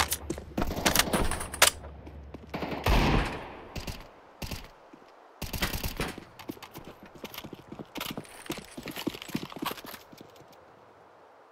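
Footsteps clank on metal steps.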